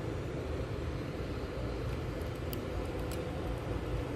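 A small plug clicks into a socket.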